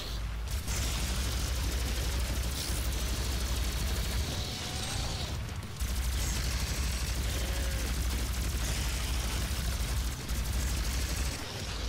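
Energy weapon shots fire in rapid bursts.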